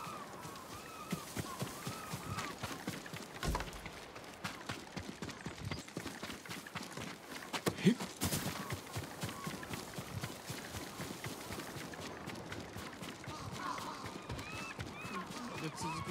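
Quick footsteps run through grass and sand.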